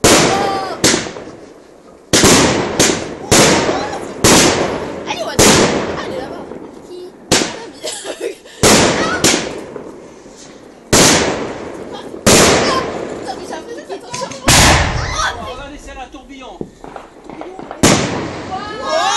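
Fireworks burst with loud booms that echo away.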